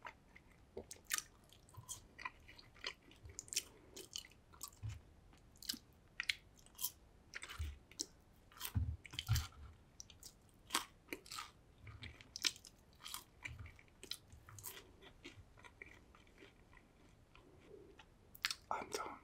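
A man smacks his lips wetly up close.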